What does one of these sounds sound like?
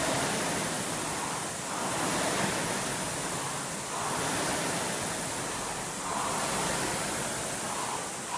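A rowing machine flywheel whooshes in rhythmic surges with each stroke.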